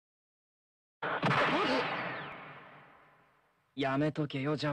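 A kick lands with a sharp swoosh and impact.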